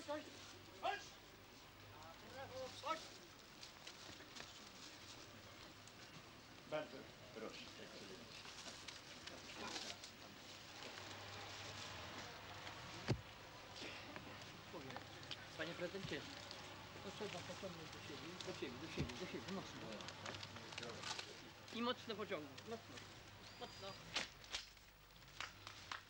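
A crowd murmurs quietly outdoors.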